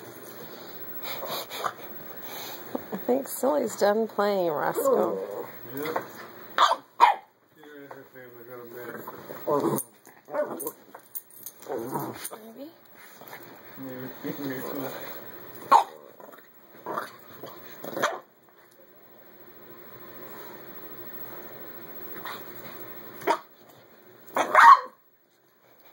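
Puppies growl and yip playfully close by.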